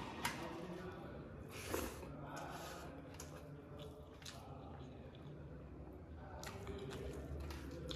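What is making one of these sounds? A man chews food close to the microphone.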